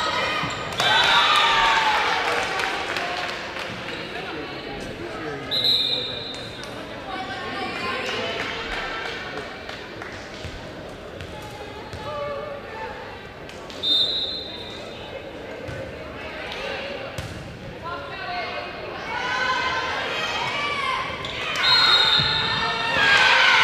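A referee's whistle blows short, sharp blasts.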